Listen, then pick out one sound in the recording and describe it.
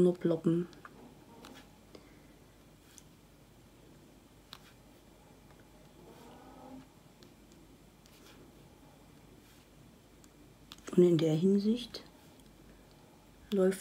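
A marker pen taps softly on paper.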